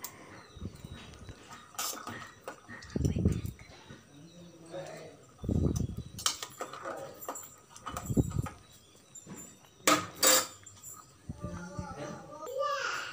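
Liquid drips and trickles into a metal pot.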